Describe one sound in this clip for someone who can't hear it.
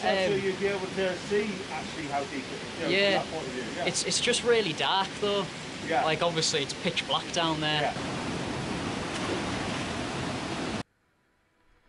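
A stream rushes over rocks nearby.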